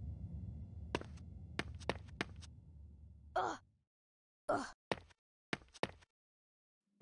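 Footsteps tap on a stone floor in an echoing hall.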